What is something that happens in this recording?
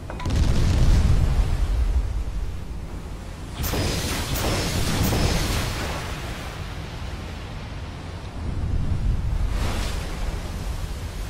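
Water rushes along the hull of a moving warship.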